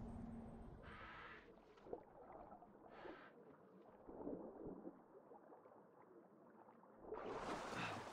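Water gurgles and bubbles, heard muffled from underwater.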